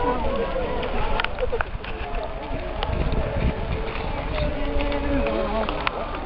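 A group of women sing a slow chant together outdoors.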